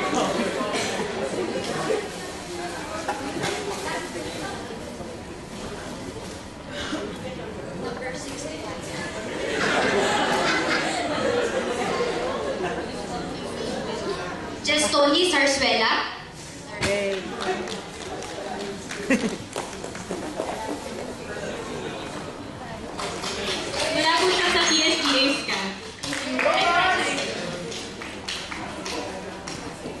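Young people read lines aloud in a hall that echoes.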